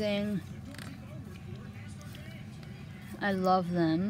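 A book's paper pages rustle as they are turned.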